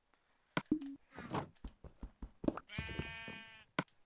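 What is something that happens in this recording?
A stone block breaks with a crunch.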